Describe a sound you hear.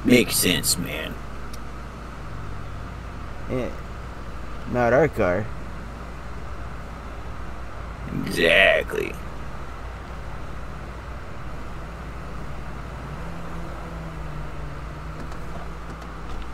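A car engine hums low and slows to an idle.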